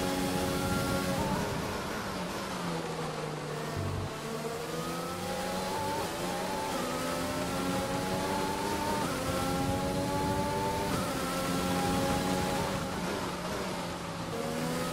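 A racing car engine whines loudly, rising and falling in pitch as the car speeds up and slows down.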